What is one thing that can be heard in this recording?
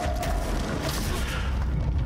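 A blast bursts with a deep boom.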